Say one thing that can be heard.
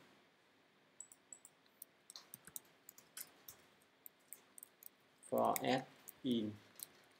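Keys click softly on a keyboard.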